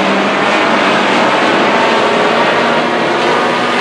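A crowd murmurs and cheers outdoors.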